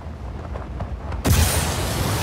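Wind rushes past a falling body.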